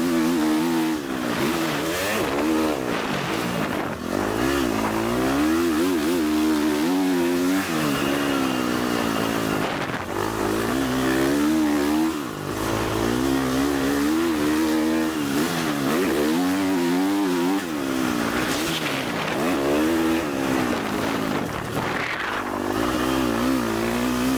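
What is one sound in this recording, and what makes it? A dirt bike engine revs loudly up and down, close by.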